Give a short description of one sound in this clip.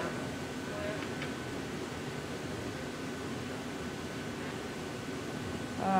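A furnace roars steadily close by.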